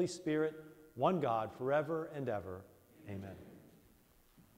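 A man chants in a sung voice through a microphone, echoing in a large hall.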